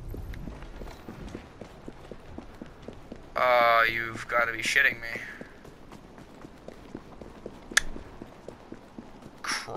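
Footsteps run across cobblestones.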